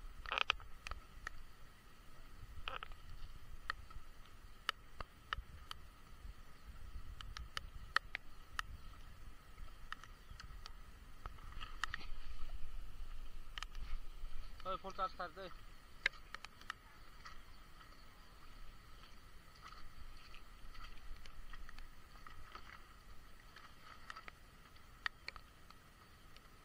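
Rain patters and drips steadily outdoors.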